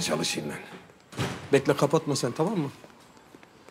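A man speaks urgently on a phone, close by.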